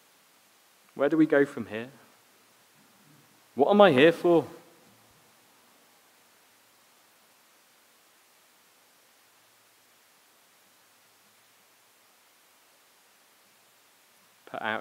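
A man speaks calmly into a microphone, with long pauses.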